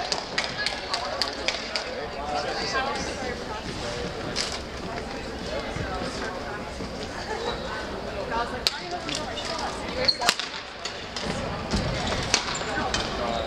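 Rackets strike shuttlecocks in a large echoing hall.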